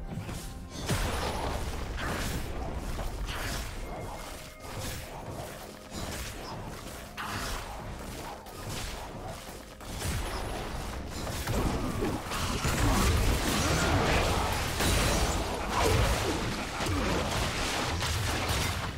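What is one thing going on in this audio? Game spell effects and attacks clash and whoosh.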